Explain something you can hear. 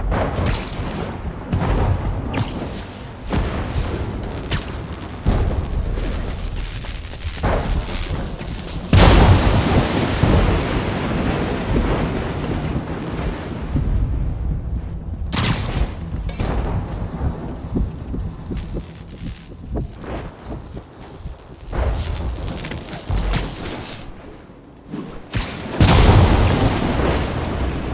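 Wind rushes past in loud gusts.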